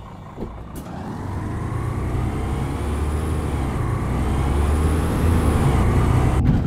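A bus engine revs up and roars louder as the bus pulls away.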